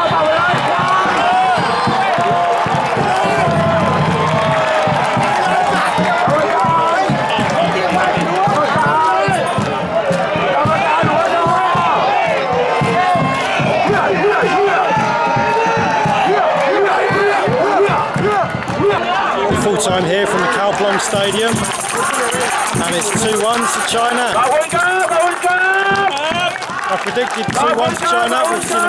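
A large crowd of fans sings and chants loudly outdoors.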